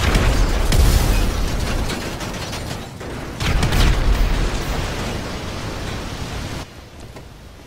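Fire roars and crackles close by.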